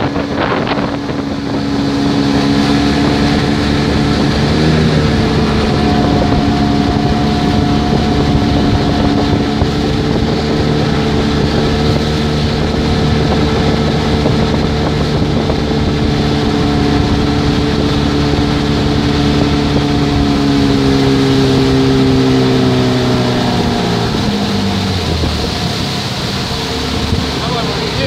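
A boat's outboard motor hums steadily close by and slows near the end.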